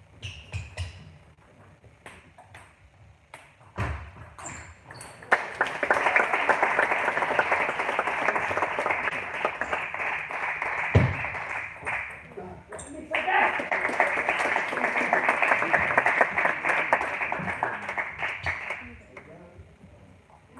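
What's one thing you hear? A table tennis ball clicks back and forth off paddles and the table in a large echoing hall.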